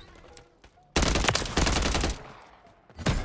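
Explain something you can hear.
Rapid gunshots fire in a quick burst.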